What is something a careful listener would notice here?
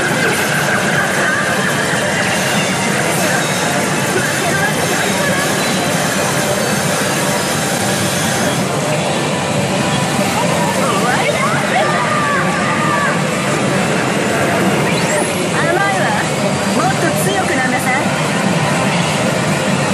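A noisy hall is filled with the din of many gaming machines.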